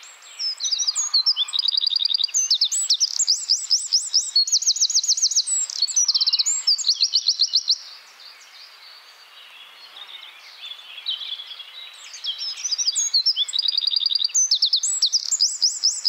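A small bird sings a loud, fast, trilling song close by.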